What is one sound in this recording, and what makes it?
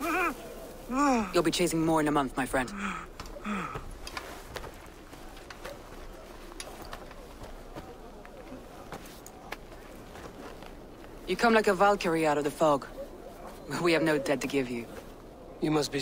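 A woman speaks calmly and warmly up close.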